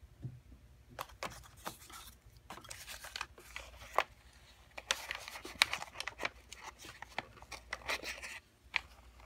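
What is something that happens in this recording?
A paper roll rustles and crinkles as it is handled.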